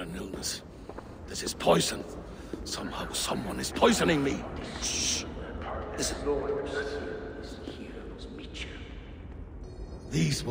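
A man speaks urgently and with agitation, close by.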